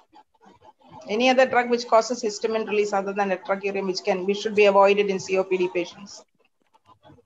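A middle-aged woman speaks calmly through a headset microphone over an online call.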